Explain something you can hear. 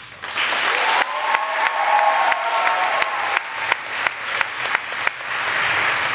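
Dancers' feet stamp sharply on a wooden floor.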